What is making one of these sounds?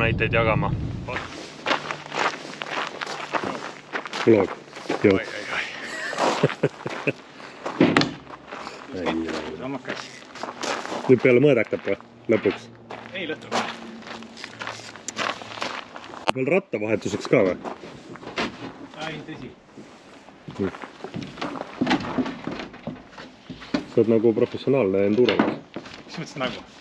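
A man talks calmly and close by into a microphone.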